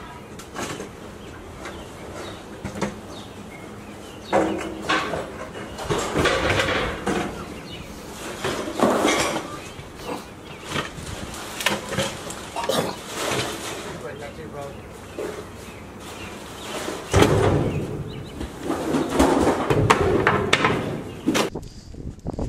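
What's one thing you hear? Junk clatters and bangs as it is thrown into a truck nearby.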